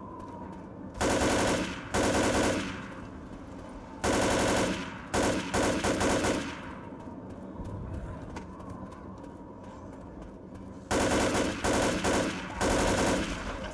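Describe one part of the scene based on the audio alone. An automatic rifle fires in loud rapid bursts.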